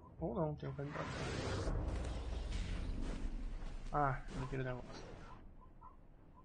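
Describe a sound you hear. A deep magical whoosh swells and then fades.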